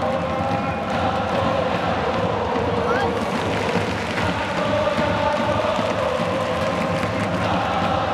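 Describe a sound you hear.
A large stadium crowd chants and sings together loudly.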